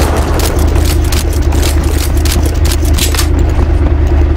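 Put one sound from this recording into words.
A rifle is reloaded with sharp metallic clicks.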